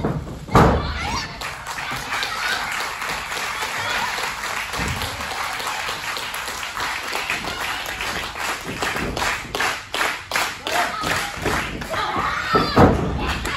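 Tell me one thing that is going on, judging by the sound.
A crowd claps rhythmically.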